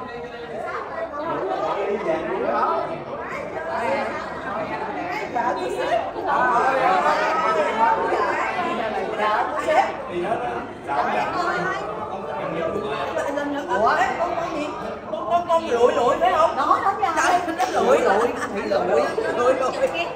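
Several women talk and laugh excitedly close by.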